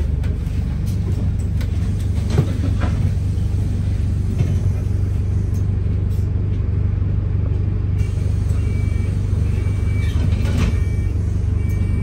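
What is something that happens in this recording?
The bus rattles and clatters as it rolls along.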